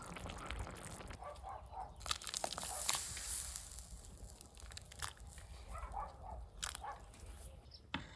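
A stew bubbles and simmers in a pot.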